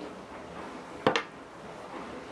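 A bottle opener clatters onto a wooden table.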